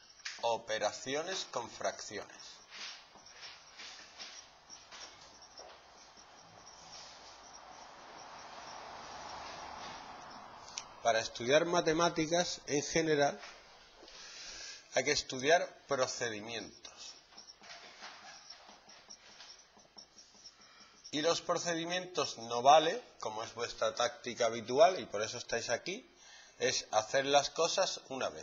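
A man speaks calmly nearby, in bursts.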